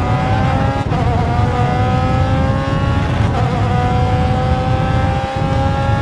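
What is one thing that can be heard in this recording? A racing car engine screams at high revs, dropping briefly on each gear change.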